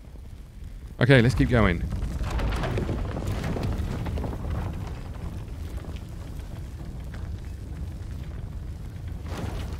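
A heavy stone door grinds and rumbles as it slides open.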